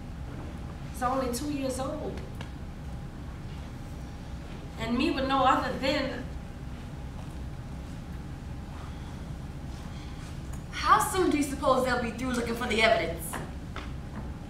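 A woman speaks with feeling on a stage, heard from a distance in a large room.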